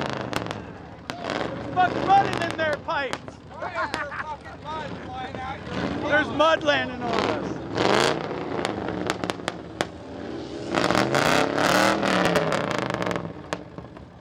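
Young people chatter and shout from the back of a truck.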